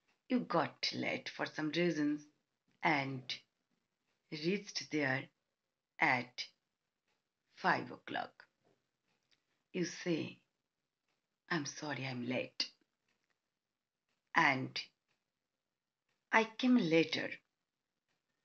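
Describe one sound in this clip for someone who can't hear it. A middle-aged woman speaks calmly and close to the microphone, in short phrases with pauses.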